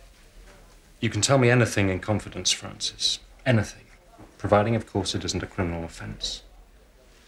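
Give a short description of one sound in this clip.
A man in his thirties speaks gently nearby.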